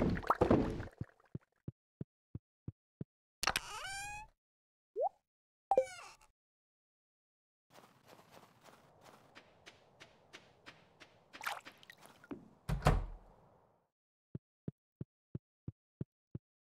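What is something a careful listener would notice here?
Light footsteps tap steadily across a wooden floor.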